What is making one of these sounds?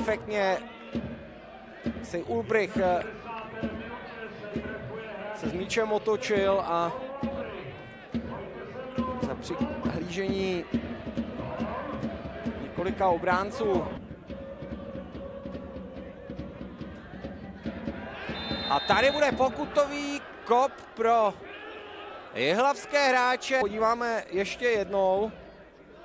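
A crowd cheers and chants in an open stadium.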